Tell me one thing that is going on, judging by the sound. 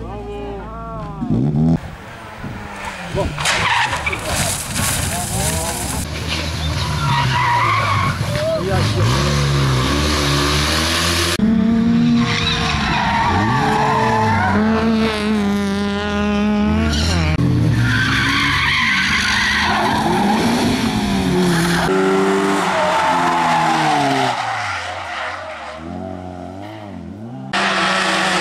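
Rally car engines roar and rev hard as they race past.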